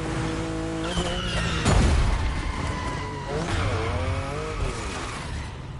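Car tyres screech while sliding.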